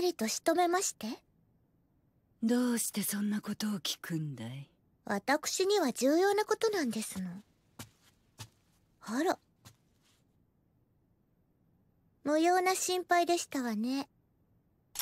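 A young girl speaks softly and sweetly.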